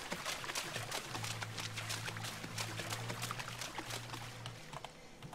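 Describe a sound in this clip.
Footsteps splash steadily through shallow water.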